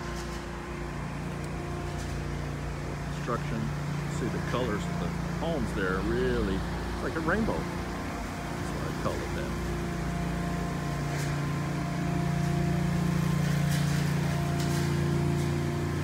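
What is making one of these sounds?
A truck engine idles with a steady low drone nearby.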